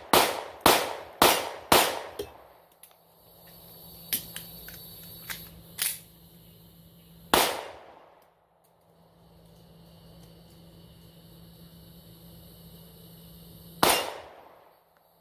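A pistol fires sharp shots in quick bursts that echo through the woods.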